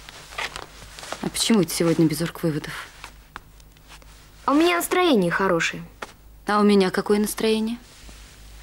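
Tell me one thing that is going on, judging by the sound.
A woman speaks quietly, close by.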